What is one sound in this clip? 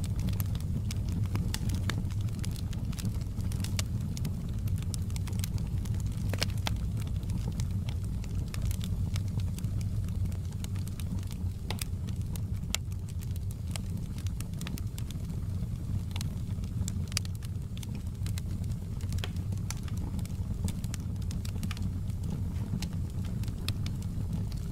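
Flames roar with a low, steady rumble.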